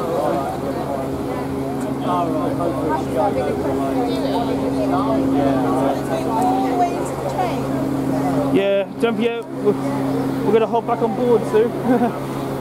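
A steam locomotive hums steadily while standing idle.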